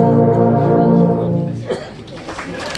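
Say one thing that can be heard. A brass band holds a final loud chord.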